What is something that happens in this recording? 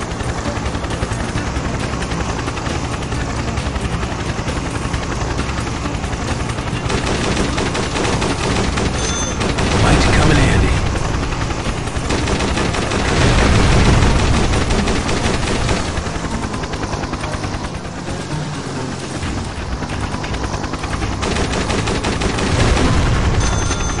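A helicopter's rotor drones steadily.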